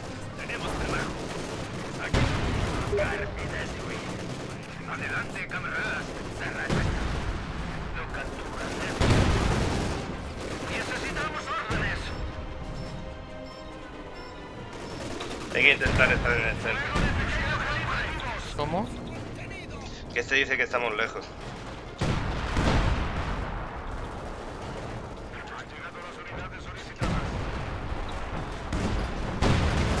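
Gunfire and explosions boom in a battle.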